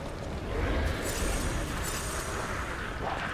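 A magic blast crackles and whooshes.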